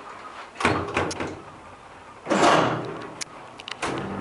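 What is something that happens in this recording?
A metal folding gate rattles and clanks shut.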